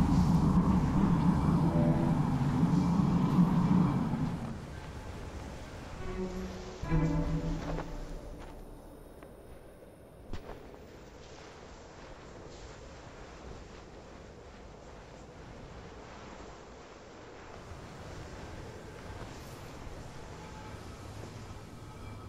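Wind blows steadily through drifting snow.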